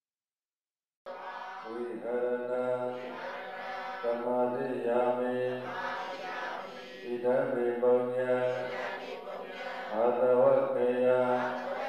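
A group of men and women chant a prayer together in unison.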